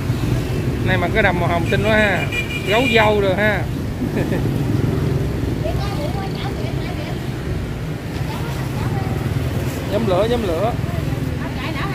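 A young girl speaks in a high voice nearby.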